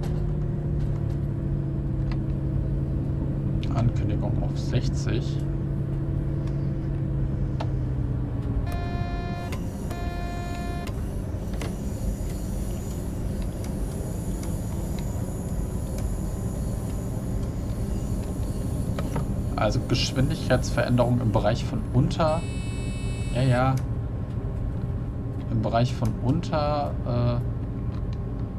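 A diesel multiple unit hums as it runs along the rails.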